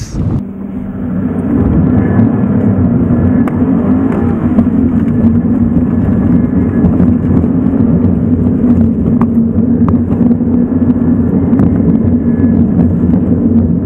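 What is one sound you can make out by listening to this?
A car engine roars loudly from inside the cabin, rising as it accelerates.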